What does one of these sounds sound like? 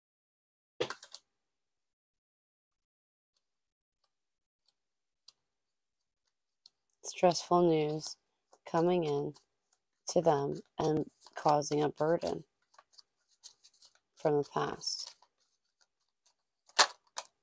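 Playing cards riffle and slap as they are shuffled.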